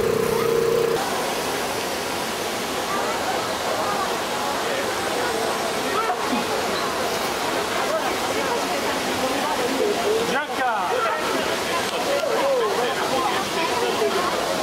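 A fountain's water splashes and rushes steadily.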